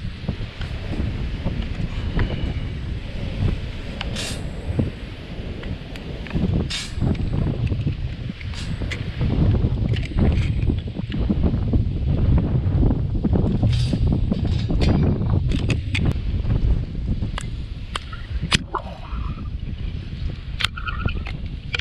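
Dry sticks clack and knock together.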